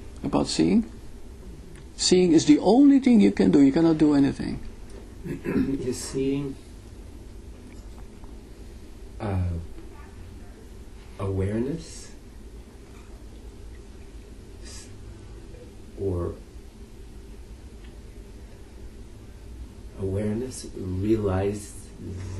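An elderly man speaks calmly and thoughtfully, close by, with long pauses.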